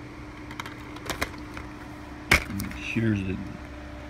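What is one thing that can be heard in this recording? A plastic disc case clicks open.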